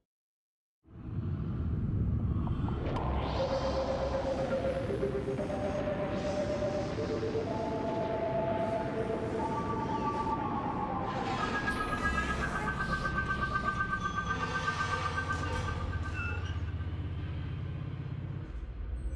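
A craft's engine hums with a deep rumble.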